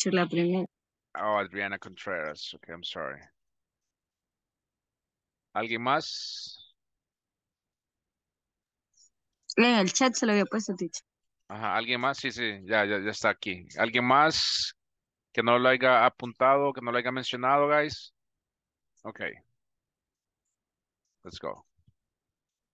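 A man speaks calmly over an online call, in bursts with pauses.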